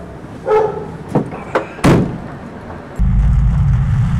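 A van door slams shut.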